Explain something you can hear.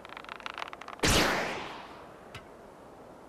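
A thrown hammer whooshes loudly through the air and fades.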